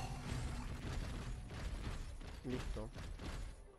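Heavy metallic footsteps thud on stone.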